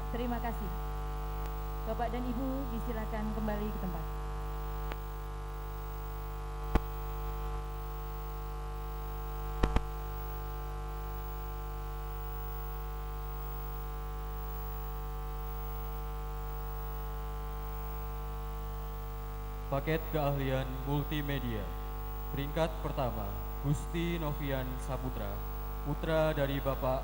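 A woman speaks through a loudspeaker in a large echoing hall.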